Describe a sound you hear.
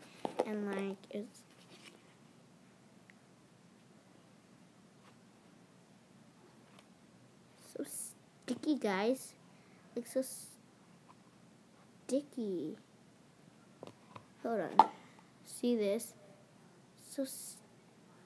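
Plastic containers clatter and click in hands.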